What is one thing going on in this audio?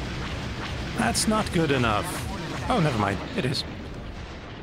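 Laser blasts zap in quick falling bursts.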